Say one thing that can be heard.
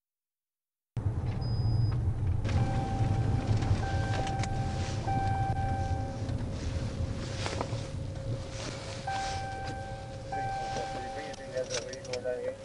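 A car engine hums steadily as the car drives, then slows down.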